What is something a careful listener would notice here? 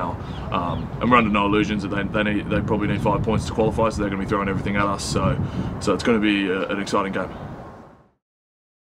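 A young man speaks calmly and casually into a close microphone.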